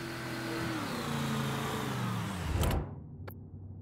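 A car engine hums as a car drives past.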